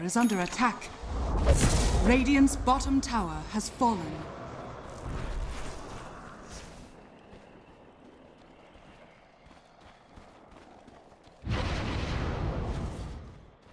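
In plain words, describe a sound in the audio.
Spells whoosh and crackle in a fantasy battle game.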